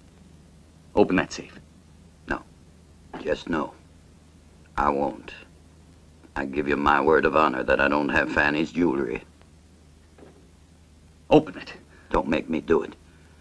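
Two men talk in low voices close by.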